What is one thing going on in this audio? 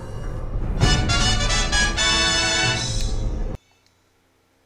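Game music plays a bright, triumphant jingle and then cuts off.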